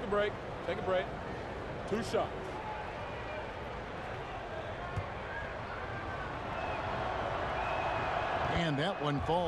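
A large crowd murmurs and cheers in an echoing arena, growing louder.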